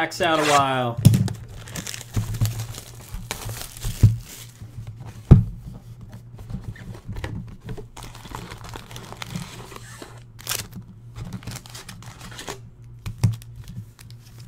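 Cardboard boxes and foil packs rustle and knock as hands open them.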